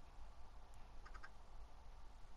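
A chicken clucks briefly.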